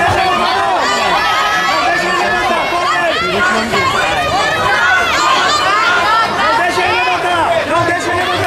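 A crowd of spectators shouts and cheers loudly all around.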